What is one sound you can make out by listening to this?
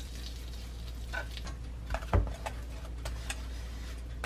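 Chopsticks tap against a frying pan.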